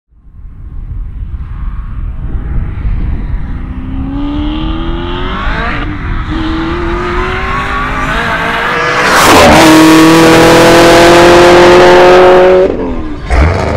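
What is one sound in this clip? A powerful car engine roars louder, rising in pitch as the car speeds up.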